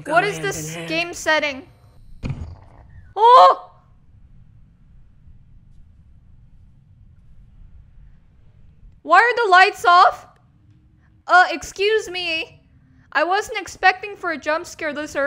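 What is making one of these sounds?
A young woman speaks anxiously, close by.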